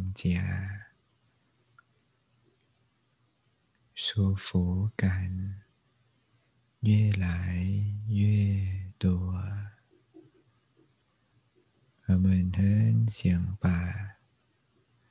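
A man speaks calmly and slowly into a close microphone, with long pauses.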